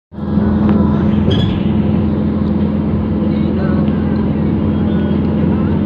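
A car engine hums steadily with road noise from inside a moving car.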